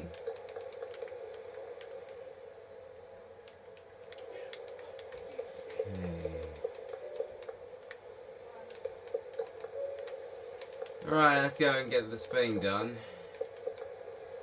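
Wooden blocks are placed with soft clicks.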